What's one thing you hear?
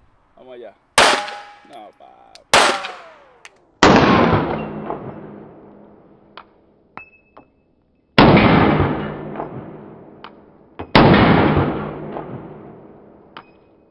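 A pistol fires loud shots that echo outdoors.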